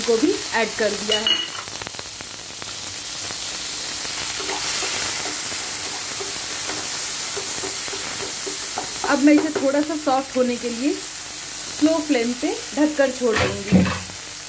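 Vegetables sizzle softly in a hot pan.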